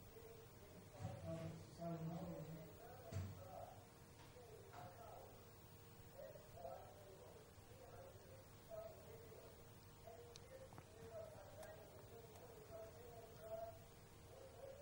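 A woman speaks quietly, far from the microphone.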